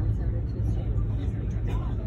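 A young girl slurps soup from a cup.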